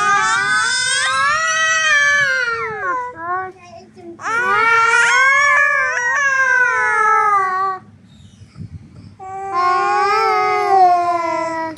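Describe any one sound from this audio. A little boy laughs softly close by.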